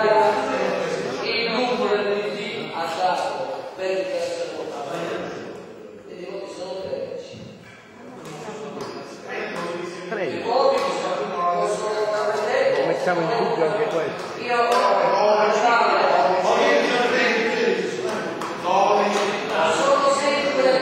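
An elderly man speaks loudly and with animation in a large echoing hall.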